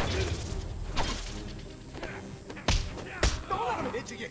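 Heavy punches land with sharp thuds.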